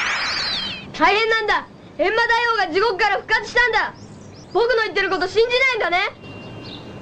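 A young boy speaks urgently with animation.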